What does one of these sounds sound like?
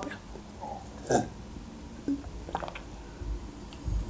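A young woman gulps a drink.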